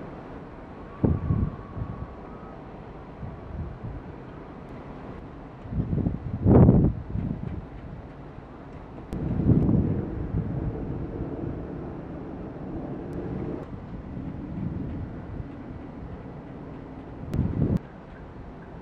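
Wind gusts and buffets outdoors in bursts.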